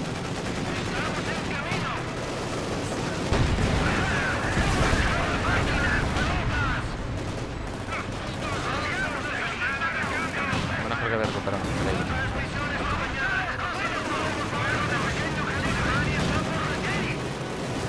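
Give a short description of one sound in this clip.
Tank engines rumble and clank.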